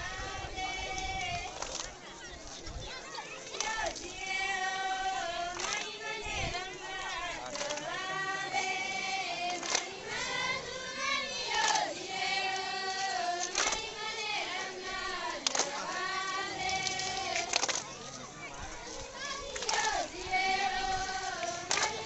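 A group of young women sing together.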